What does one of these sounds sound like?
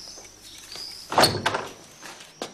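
A knock sounds on a wooden door.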